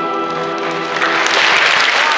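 An orchestra holds a final chord in a large hall.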